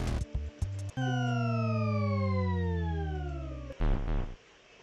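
A cartoonish falling tone slides down in pitch.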